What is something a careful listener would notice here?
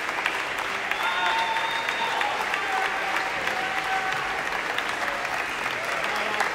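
Audience members cheer and whistle.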